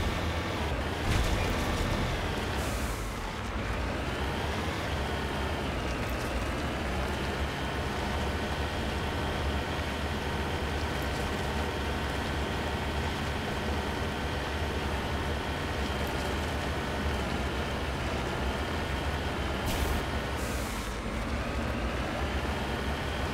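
A vehicle engine hums steadily, its pitch rising and falling as it speeds up and slows.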